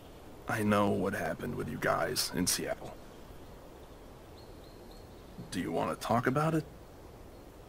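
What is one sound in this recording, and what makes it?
A man speaks calmly and quietly, close by.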